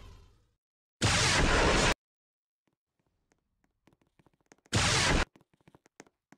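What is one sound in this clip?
Electric zaps crackle in short, loud bursts.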